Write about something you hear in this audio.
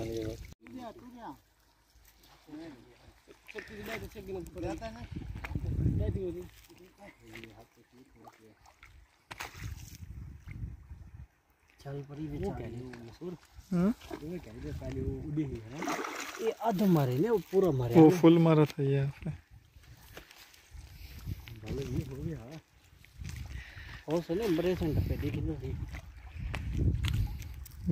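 Water splashes as a man wades.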